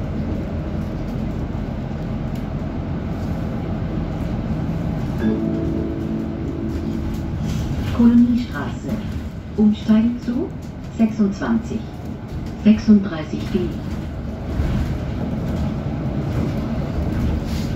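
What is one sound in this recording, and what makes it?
A bus engine rumbles steadily from inside the moving bus.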